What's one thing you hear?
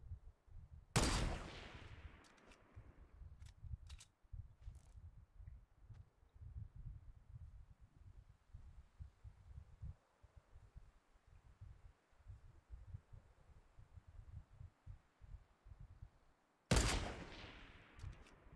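A sniper rifle fires with an echoing crack in a video game.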